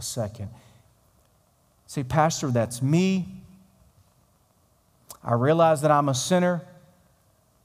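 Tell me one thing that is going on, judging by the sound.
A middle-aged man speaks with animation through a microphone in a large hall.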